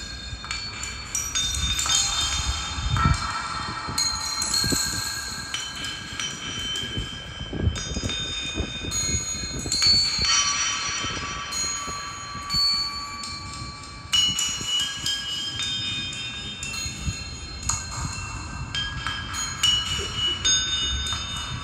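Electronic music plays with shifting synthesizer tones and deep thumps.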